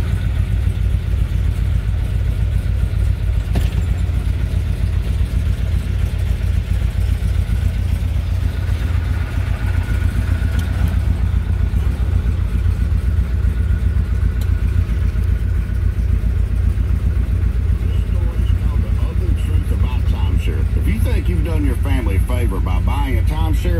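A car engine idles with a deep, steady rumble.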